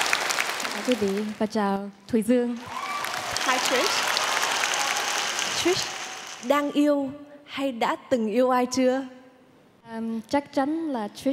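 A young woman speaks warmly through a microphone in a large hall.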